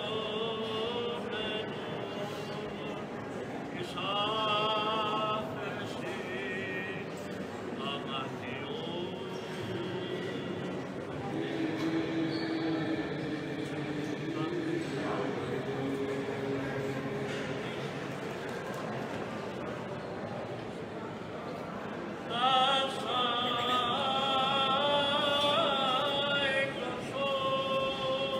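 A crowd of people murmurs softly in a large echoing hall.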